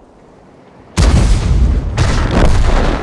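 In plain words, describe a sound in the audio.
An explosion roars close by.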